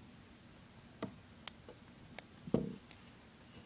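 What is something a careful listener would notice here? A plastic hook clicks against plastic pegs.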